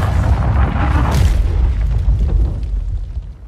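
A heavy impact thuds into the ground, throwing up debris.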